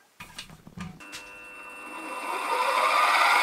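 A drill press motor starts up and hums steadily, growing louder.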